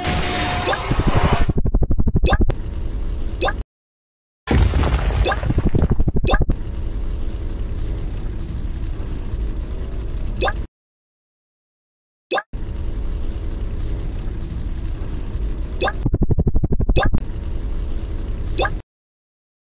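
A car engine hums steadily, with short breaks.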